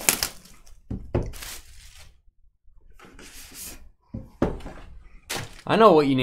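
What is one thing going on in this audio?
Cardboard boxes knock and slide against each other.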